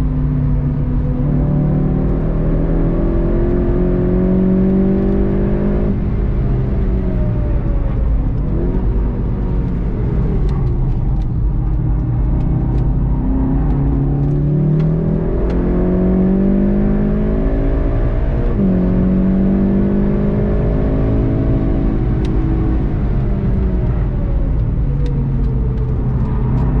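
Wind rushes loudly past a fast-moving car.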